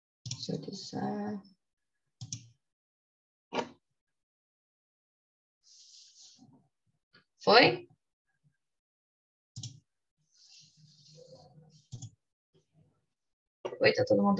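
A young woman speaks calmly over an online call, in short bursts with pauses.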